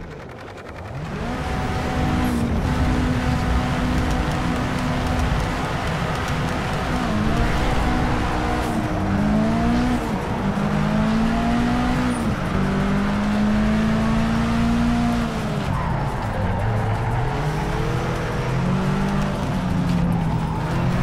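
Car engines rev and roar, rising and dropping in pitch with each gear change.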